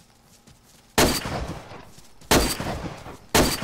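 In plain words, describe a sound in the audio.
Rifle shots crack loudly and echo away.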